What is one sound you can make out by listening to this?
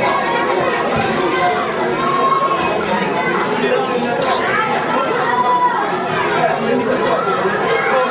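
Boys talk and call out to each other close by.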